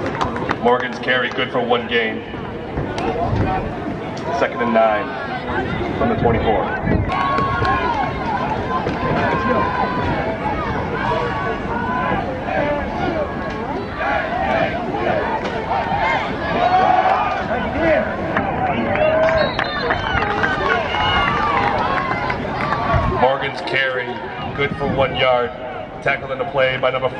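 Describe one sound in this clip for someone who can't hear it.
Young men shout on the field.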